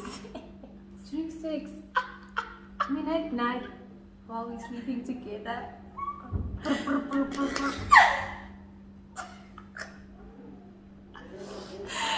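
Two young women laugh loudly together.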